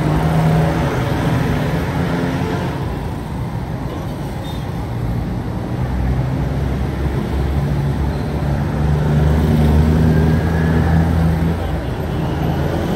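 Motorcycle engines buzz past close by.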